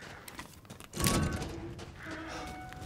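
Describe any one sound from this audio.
A metal gate creaks open.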